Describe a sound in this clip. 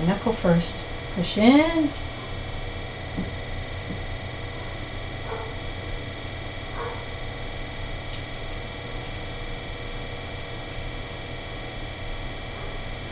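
Wet clay squelches softly under hands.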